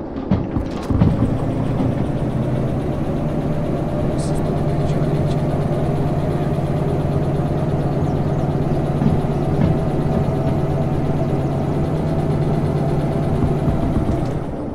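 A diesel locomotive engine rumbles steadily from close by.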